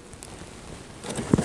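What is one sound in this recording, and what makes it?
Dry twigs and reeds crunch underfoot close by.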